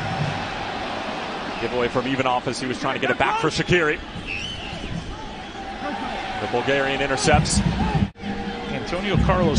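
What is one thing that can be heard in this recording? A large stadium crowd murmurs steadily outdoors.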